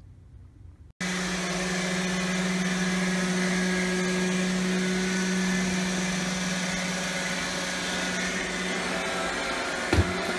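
A robot vacuum cleaner hums steadily as it moves across the floor.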